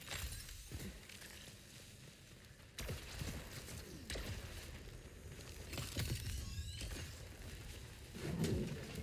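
Heavy footsteps thud on soft ground.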